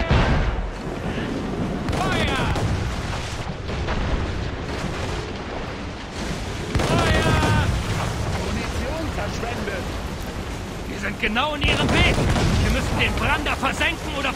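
Cannons fire with deep, rumbling booms.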